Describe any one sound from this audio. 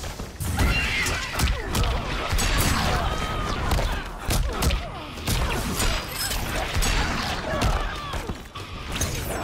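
Punches and kicks land with heavy, thudding impacts.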